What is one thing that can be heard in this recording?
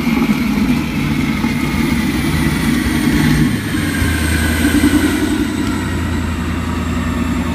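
A car engine rumbles loudly and steadily at idle nearby.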